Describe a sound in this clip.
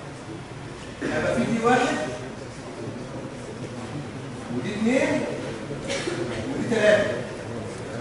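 A man speaks calmly, as if lecturing.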